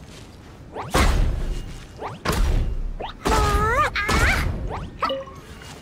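Fiery blasts boom and crackle loudly.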